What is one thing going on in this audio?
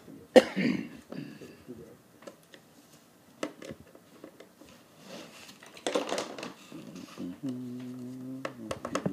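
Objects knock against a hard plastic case.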